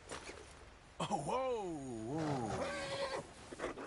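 A horse whinnies loudly in distress.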